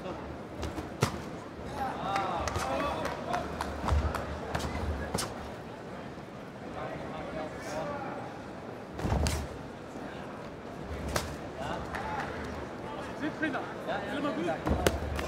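Gloved punches land with sharp thuds.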